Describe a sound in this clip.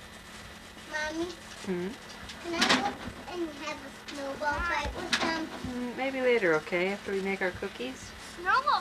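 Young children talk and call out outdoors.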